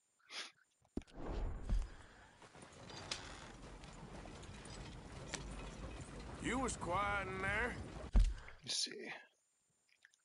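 A horse-drawn wagon rolls over a dirt track.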